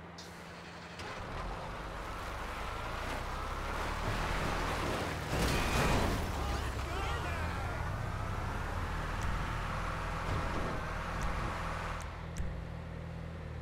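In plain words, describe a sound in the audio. A heavy truck engine rumbles and revs as the truck drives off.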